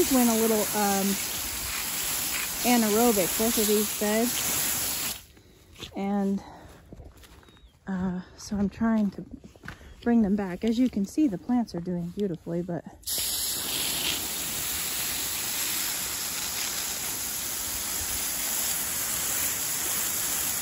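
Water sprays from a hose with a steady hiss.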